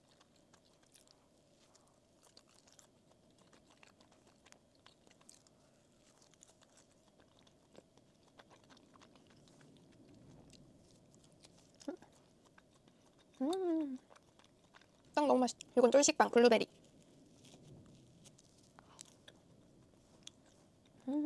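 A young woman chews soft food close to a microphone with small sticky, smacking sounds.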